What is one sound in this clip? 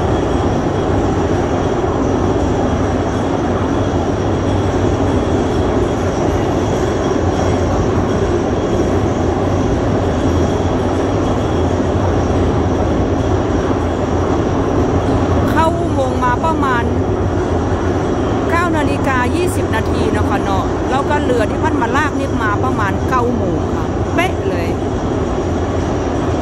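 A boat engine rumbles steadily, echoing in a long tunnel.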